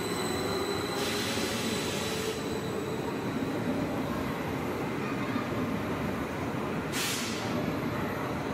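Air hisses sharply from a train's brakes.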